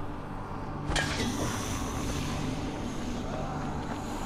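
Gas hisses from a leaking canister.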